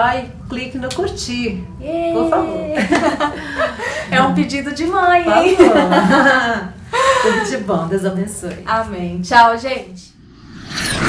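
A young woman talks and laughs with animation close by.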